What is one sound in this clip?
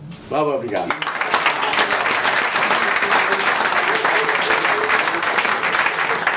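A crowd applauds loudly and steadily.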